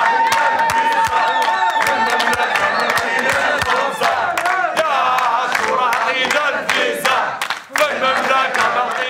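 A crowd of men and women sings loudly together.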